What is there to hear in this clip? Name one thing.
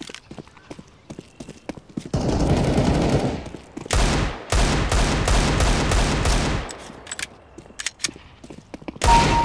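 Footsteps thud on gravel.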